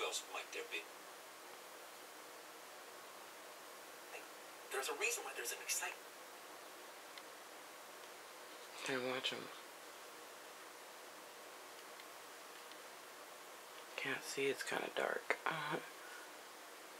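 A man speaks in short bursts through a television loudspeaker.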